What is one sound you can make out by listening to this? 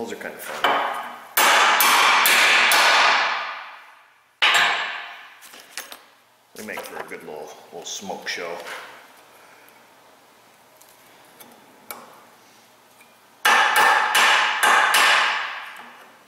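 A hammer strikes metal in sharp, ringing blows.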